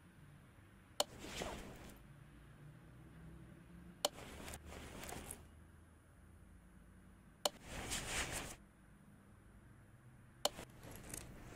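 A metal engine part clicks sharply into place.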